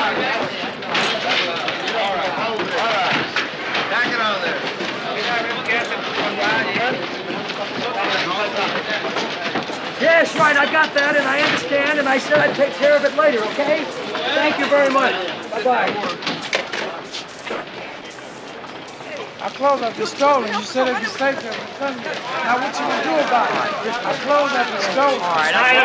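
A crowd of men murmurs and talks in an echoing room.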